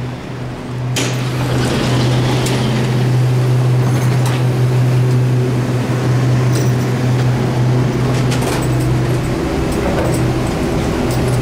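A train rumbles loudly through a tunnel.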